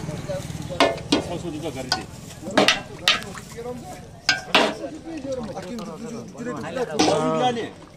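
A metal ladle clinks against a steel pot.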